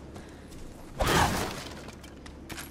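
A wooden crate smashes and splinters loudly.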